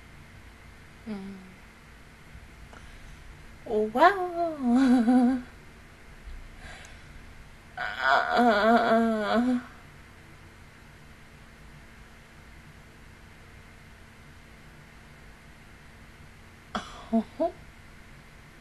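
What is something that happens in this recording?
A young man blows short, wavering, whistle-like notes through his cupped hands, close to a microphone.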